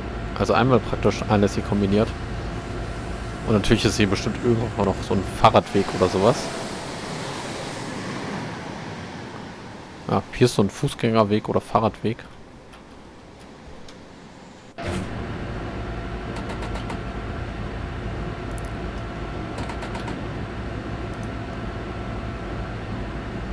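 A train's engine hums steadily from inside the cab.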